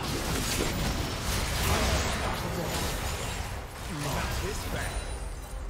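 Magic blasts and clashing weapon hits crackle in a busy fight.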